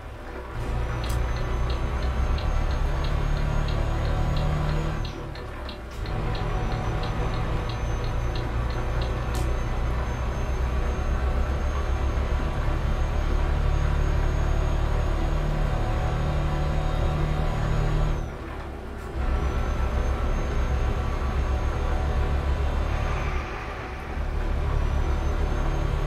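A truck engine drones low and steady while driving.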